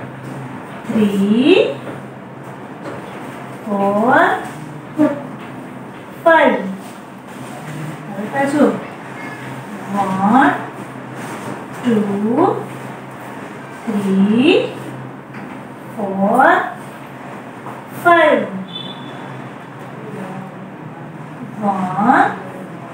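A woman speaks clearly into a microphone, saying short words one at a time.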